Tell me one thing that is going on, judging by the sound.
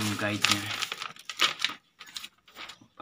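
Plastic packaging crinkles.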